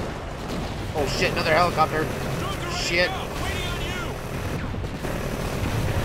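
A helicopter's rotor thuds overhead.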